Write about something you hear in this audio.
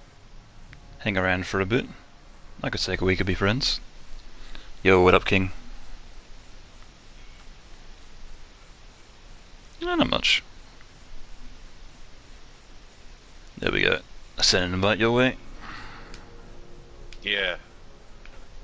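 A man talks with animation into a microphone in short bursts.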